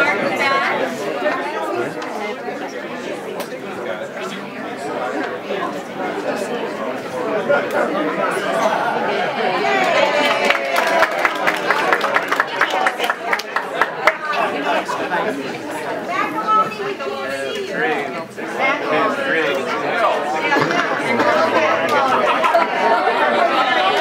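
A crowd of men and women chatters in a room with some echo.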